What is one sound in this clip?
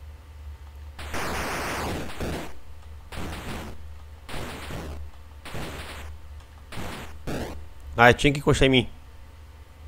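Retro video game sound effects beep and buzz as a character shoots enemies.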